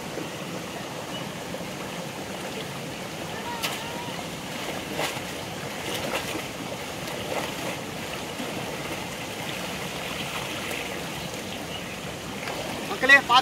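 Water splashes as a young man wades.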